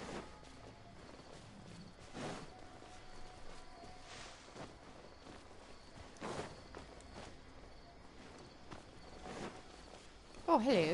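Sword swings whoosh repeatedly in quick bursts.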